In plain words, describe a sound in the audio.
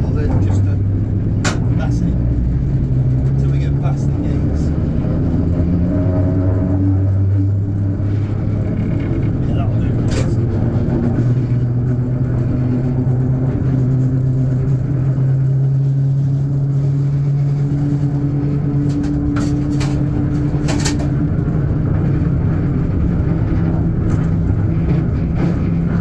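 A steam locomotive rumbles with a steady low drone as it rolls slowly along.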